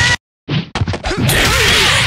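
A crackling electric burst zaps.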